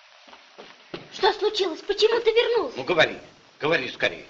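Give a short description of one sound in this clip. A young boy speaks nearby in a high voice.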